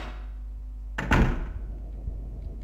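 A heavy door bangs open.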